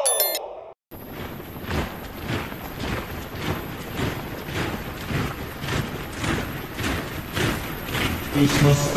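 Many footsteps march in step.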